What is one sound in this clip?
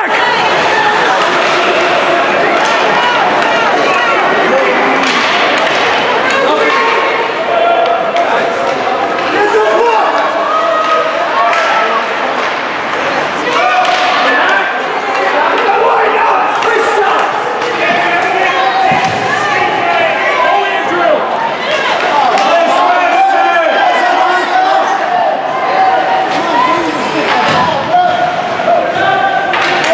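A crowd of spectators chatters and cheers in a large echoing rink.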